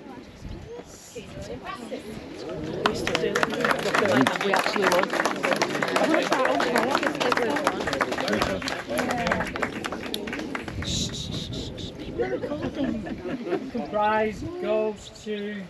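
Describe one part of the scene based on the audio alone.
A group of adults chats and laughs together outdoors.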